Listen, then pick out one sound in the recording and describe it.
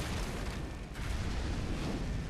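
Heavy rocks crash and crumble apart.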